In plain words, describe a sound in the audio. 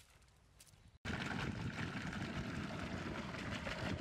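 Water gushes loudly from a pipe and splashes onto the ground.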